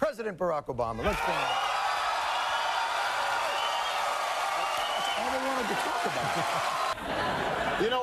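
A studio audience cheers and applauds.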